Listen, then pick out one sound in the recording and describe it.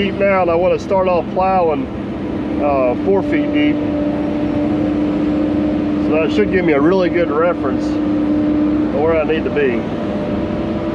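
Excavator hydraulics whine, rising and falling as the arm moves.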